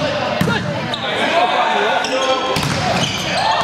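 A volleyball is struck with sharp slaps in an echoing gym.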